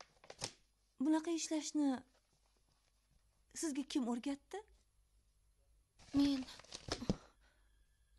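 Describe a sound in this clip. A middle-aged woman speaks with animation nearby.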